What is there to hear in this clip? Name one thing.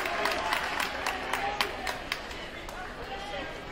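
A basketball bounces on a hardwood floor, echoing in a large gym.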